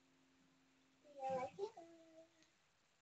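A young girl speaks briefly up close.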